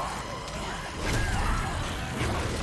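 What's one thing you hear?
A weapon fires with a crackling electric blast.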